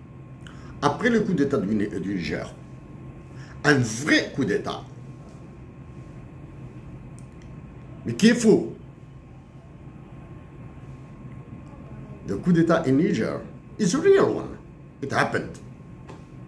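A middle-aged man speaks calmly into a nearby microphone, in short phrases with pauses.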